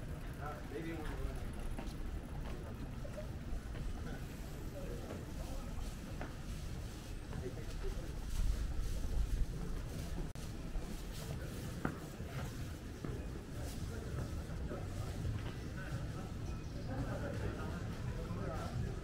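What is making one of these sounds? Distant voices of passers-by murmur along a street.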